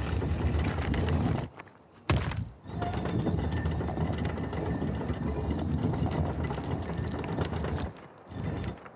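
A heavy stone-and-metal dial grinds as it turns.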